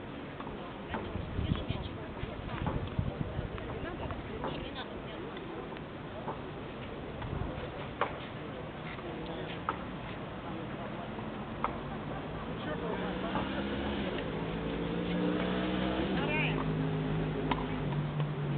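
A tennis ball is struck with a racket in sharp pops.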